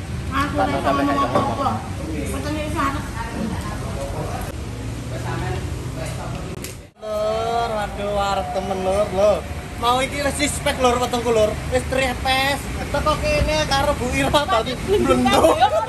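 A middle-aged woman talks close by.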